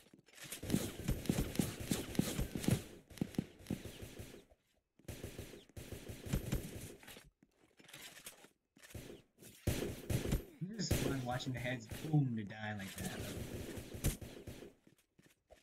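Game gunfire rattles in rapid bursts.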